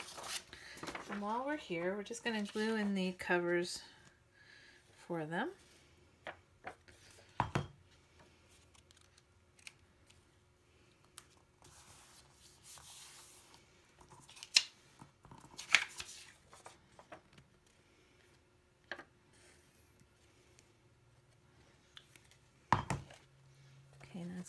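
Paper cards tap and slide as hands set them down.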